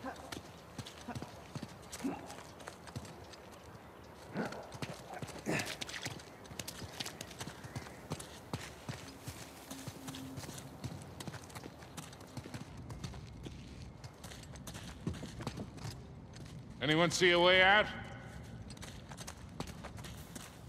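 Footsteps run over stone and gravel.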